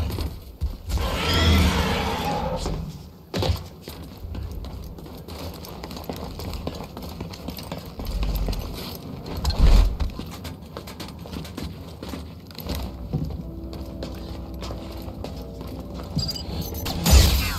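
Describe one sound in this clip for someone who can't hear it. Footsteps thud on a metal walkway.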